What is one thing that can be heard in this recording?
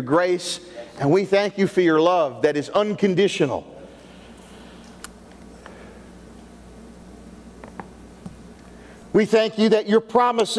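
A man speaks calmly into a microphone in a large hall, pausing between phrases.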